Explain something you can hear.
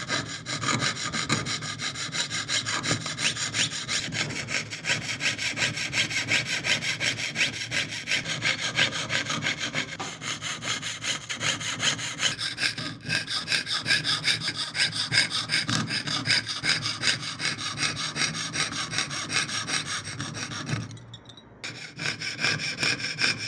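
A small metal tool taps rapidly and steadily against a metal plate.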